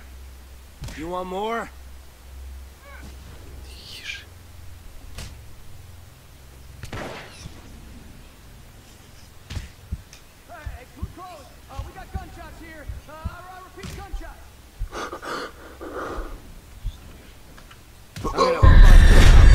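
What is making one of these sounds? Fists thud on a body in a brawl.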